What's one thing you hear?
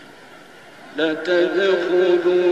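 A man chants in a long, wavering melodic voice through a microphone, starting suddenly and loudly.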